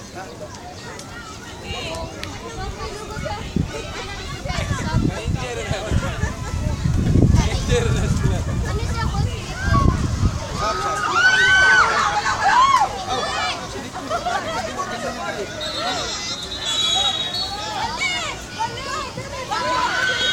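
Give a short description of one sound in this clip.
Young people shout and call out in the distance outdoors.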